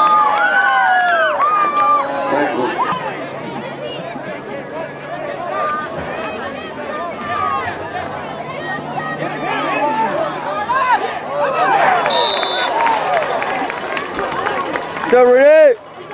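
Many young men and adults shout and cheer outdoors.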